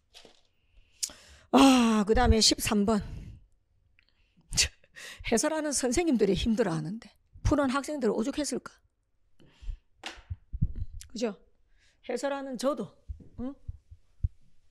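A young woman speaks with animation through a close microphone.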